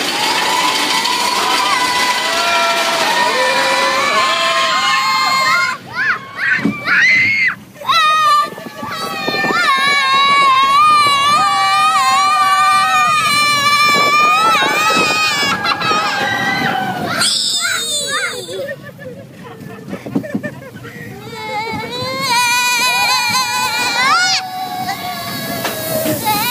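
A man shouts and yells with excitement, close by.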